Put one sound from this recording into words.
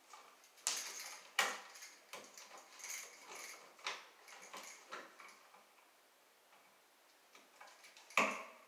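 Metal clicks and scrapes against a wall box.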